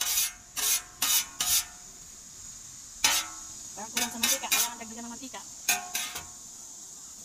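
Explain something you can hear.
A metal spatula scrapes and clatters against the griddle.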